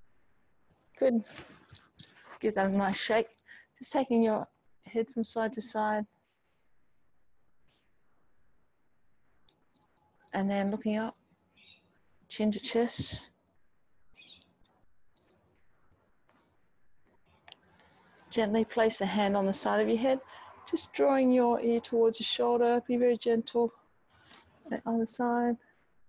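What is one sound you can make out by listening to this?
A woman speaks calmly through a microphone, giving instructions in pauses.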